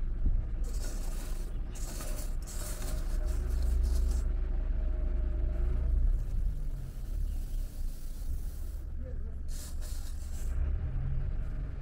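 Grain rustles as it is scooped with a bowl.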